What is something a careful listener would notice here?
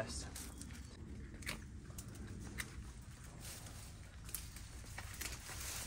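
Weeds rustle and tear as they are pulled from soil.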